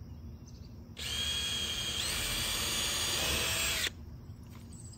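A cordless drill whirs, driving a screw.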